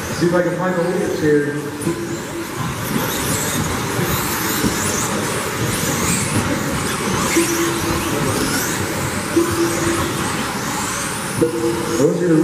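Small electric motors whine, rising and falling in pitch as toy cars race around.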